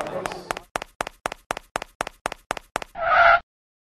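Quick cartoon footsteps patter in an even rhythm.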